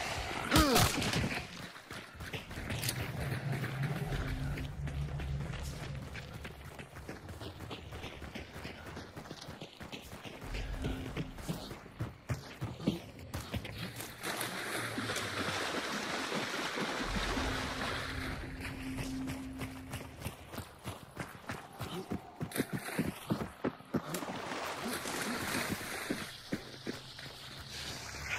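Footsteps crunch on dirt and grass.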